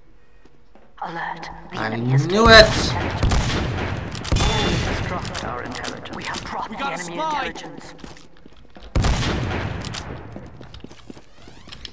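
Gunshots and explosions go off in bursts.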